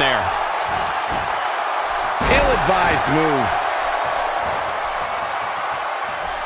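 A large crowd cheers steadily.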